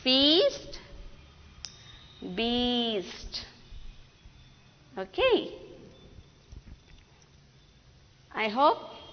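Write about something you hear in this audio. A woman speaks clearly into a microphone in short, drawn-out phrases with pauses between them.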